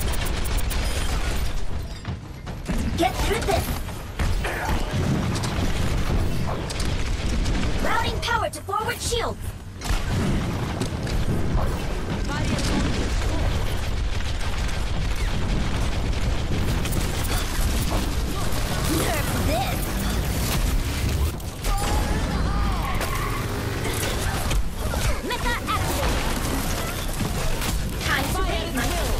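Rapid video game gunfire blasts and crackles.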